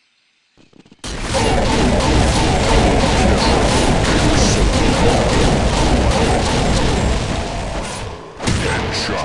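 Explosions boom and roar in quick succession.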